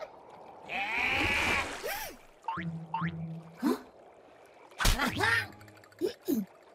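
Cartoon voices talk and exclaim excitedly.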